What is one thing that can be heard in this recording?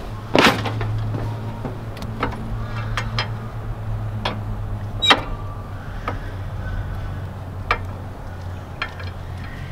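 A riding mower's engine idles with a steady low hum.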